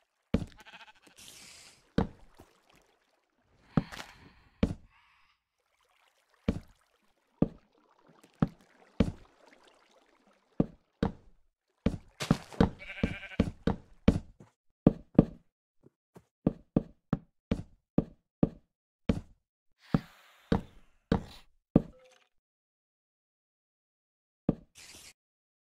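Wooden blocks are placed one after another with short, hollow knocking thuds.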